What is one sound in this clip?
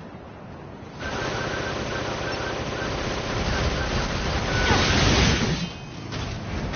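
Rapid gunfire and explosions roar in a game battle.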